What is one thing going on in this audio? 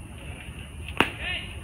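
A bat cracks against a ball in the distance.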